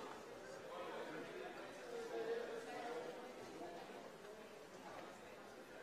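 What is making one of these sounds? Many men and women chat at once in a large echoing hall.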